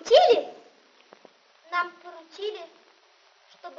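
A boy speaks loudly nearby.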